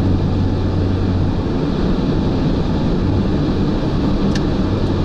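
Tyres and engine rumble steadily from inside a car moving fast on a highway.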